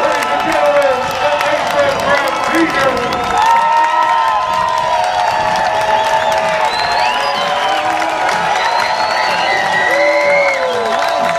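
A crowd of young men cheers and shouts outdoors.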